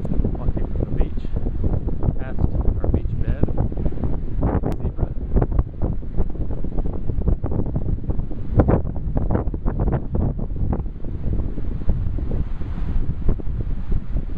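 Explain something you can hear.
Strong wind gusts and rumbles against the microphone outdoors.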